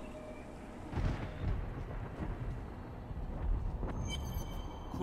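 Magical spell effects whoosh and crackle.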